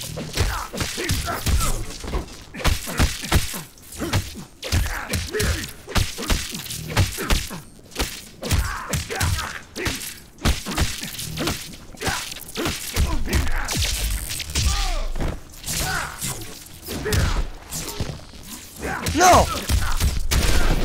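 Electric zaps crackle in a fighting game.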